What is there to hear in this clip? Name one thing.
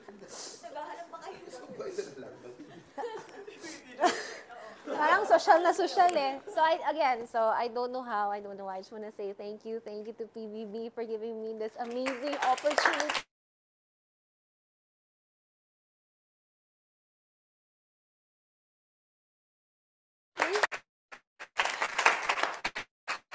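A young woman talks and laughs with animation, close by.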